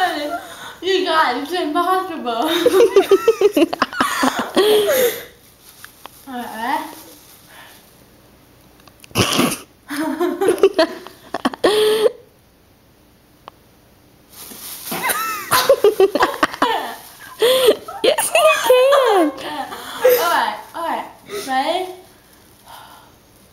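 A young girl sings with animation, close by.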